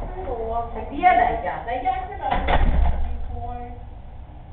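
A woman talks outside, muffled through a door.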